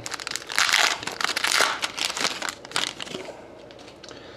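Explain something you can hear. Foil wrapping crinkles and rustles loudly.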